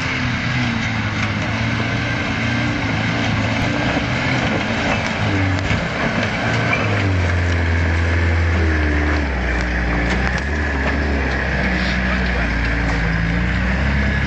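Tyres crunch over loose rocks and dirt.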